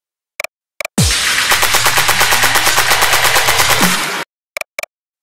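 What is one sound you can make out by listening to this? A bright electronic jingle plays briefly.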